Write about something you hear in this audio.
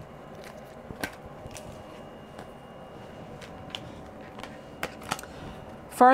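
Playing cards rustle and tap as a hand picks them up.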